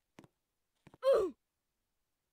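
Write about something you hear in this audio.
A cartoon character lets out a short cry.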